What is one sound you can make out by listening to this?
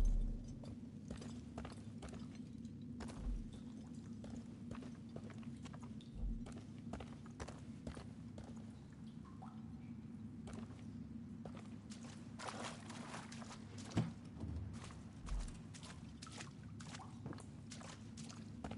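Footsteps crunch slowly on rocky ground.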